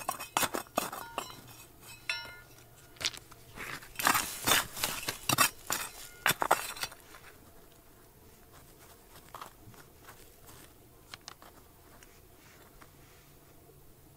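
Loose stones and grit rattle as they are brushed aside by hand.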